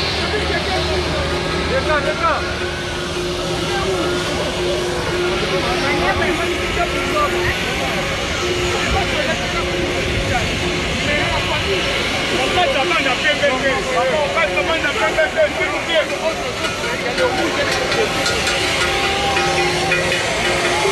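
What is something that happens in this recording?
A large crowd of men and women chatters and calls out close by, outdoors.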